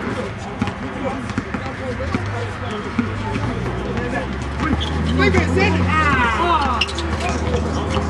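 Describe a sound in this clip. Young men shout and talk nearby.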